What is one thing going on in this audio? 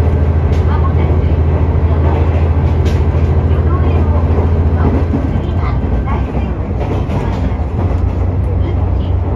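Wind rushes past an open train window.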